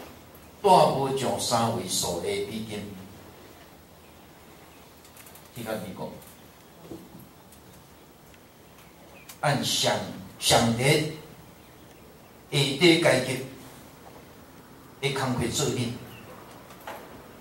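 An elderly man speaks calmly into a microphone in short bursts with pauses, heard through a loudspeaker.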